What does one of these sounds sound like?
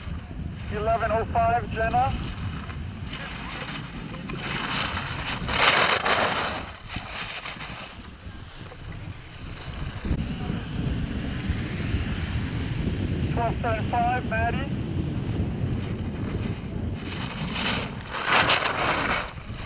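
Skis scrape and hiss across hard snow.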